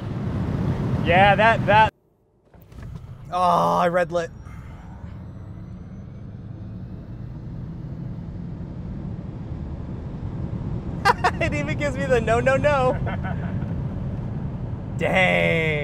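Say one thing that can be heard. A man talks excitedly close by.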